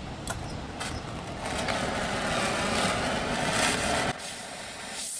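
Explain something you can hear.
A gas torch flame roars loudly.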